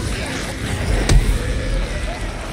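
A motorcycle engine rumbles.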